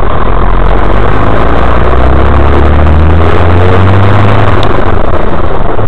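A bus engine revs up and then eases off.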